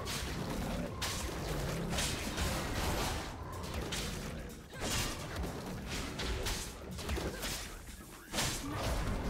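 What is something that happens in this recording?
Game combat effects thump and whoosh as a creature is struck repeatedly.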